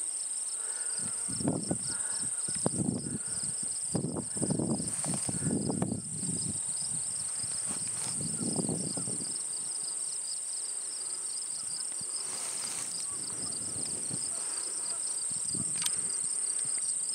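Wind blows in gusts across open ground and rustles dry grass.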